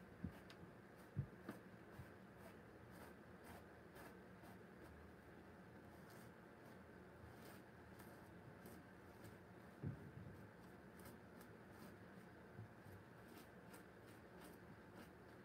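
A paintbrush scrapes softly across canvas.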